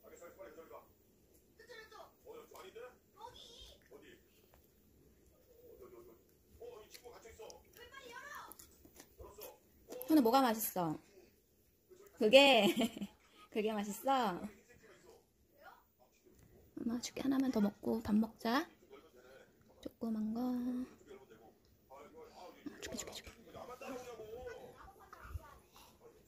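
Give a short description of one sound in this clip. A young child chews food with soft smacking sounds.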